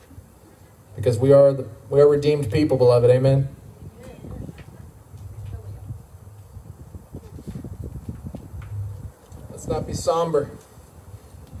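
A man speaks with animation through a microphone and loudspeaker.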